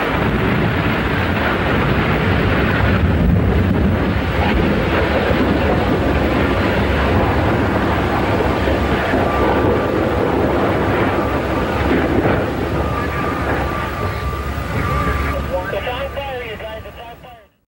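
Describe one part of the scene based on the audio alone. A large fire roars and crackles in the distance.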